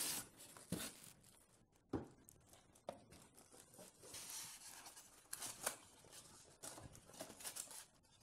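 Foam packing blocks squeak and rub against each other.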